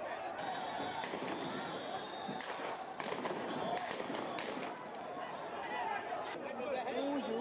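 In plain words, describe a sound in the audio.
Loud bangs ring out in the distance.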